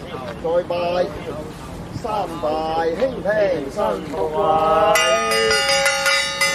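A man chants loudly nearby.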